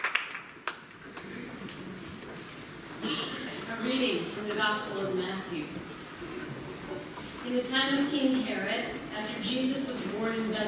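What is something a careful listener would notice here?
A choir sings with an orchestra.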